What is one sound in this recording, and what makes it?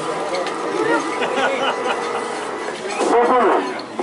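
A crowd chatters and calls out outdoors.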